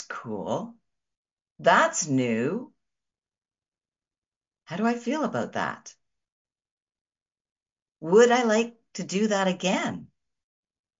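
A middle-aged woman speaks calmly and warmly into a microphone, with short pauses.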